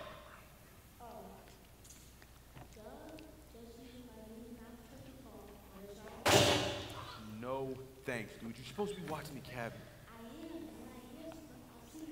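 An elderly woman speaks with animation through a microphone.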